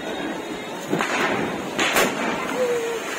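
Fireworks pop and bang outdoors.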